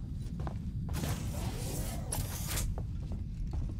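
A heavy door slides open with a hiss.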